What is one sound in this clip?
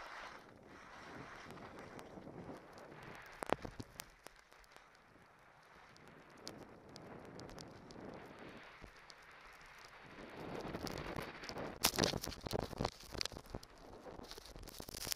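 Skis hiss and scrape over snow.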